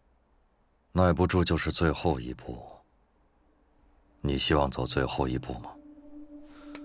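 A man answers in a low, calm voice, close by.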